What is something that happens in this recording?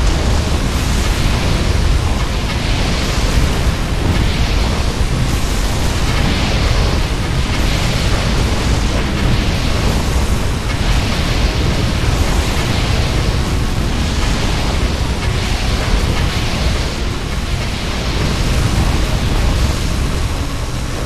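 Laser turrets fire buzzing beams over and over.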